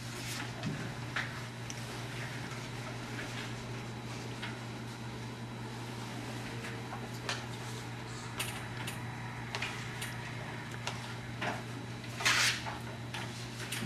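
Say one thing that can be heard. Papers rustle and crinkle as they are handled.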